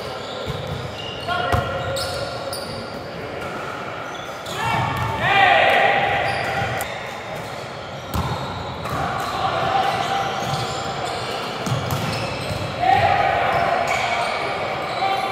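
Sneakers squeak loudly on a wooden court.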